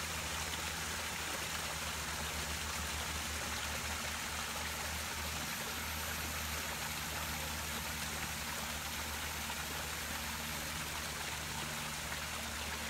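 Water ripples and trickles softly.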